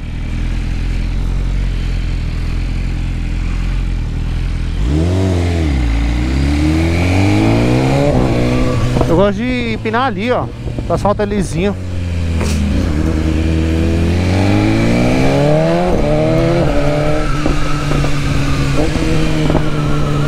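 A motorcycle engine revs up and down as the bike rides through traffic.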